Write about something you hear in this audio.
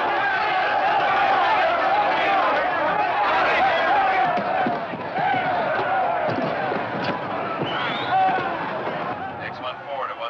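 A crowd of men shouts and roars in a riot.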